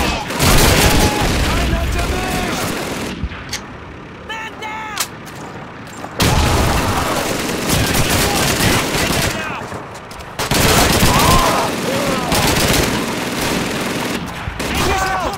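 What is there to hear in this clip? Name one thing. Gunfire crackles loudly in bursts.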